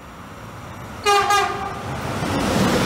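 A train horn sounds a short blast.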